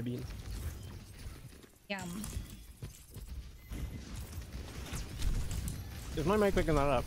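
Weapon fire crackles and zaps in a game.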